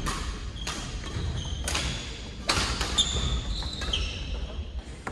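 Shoes squeak on a wooden court floor.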